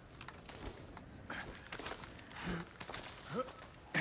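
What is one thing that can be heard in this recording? Hands and boots scrape and knock against rock during a climb.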